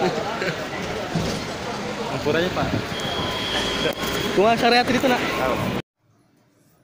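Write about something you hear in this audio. A crowd chatters noisily in a busy, echoing space.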